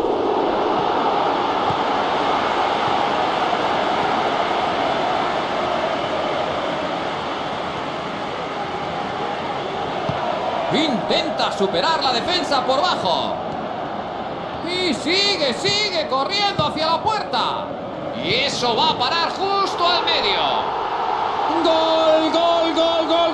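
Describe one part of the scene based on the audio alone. A stadium crowd roars steadily throughout.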